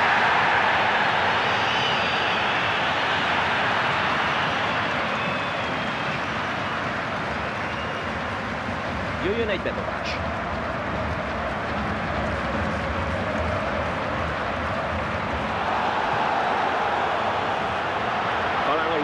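A stadium crowd roars and chants steadily throughout.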